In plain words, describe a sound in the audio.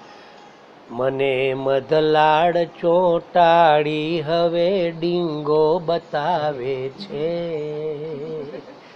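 An elderly man chants in a melodic, sing-song voice.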